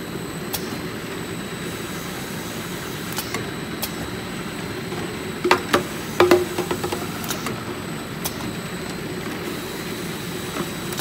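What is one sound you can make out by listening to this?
A conveyor machine hums steadily.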